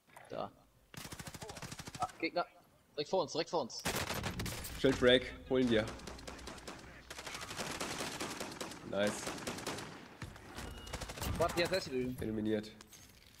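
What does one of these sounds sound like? Rapid gunfire rattles in bursts, heard up close.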